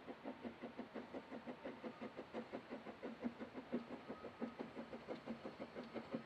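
A steam locomotive chuffs rapidly and steadily in the distance.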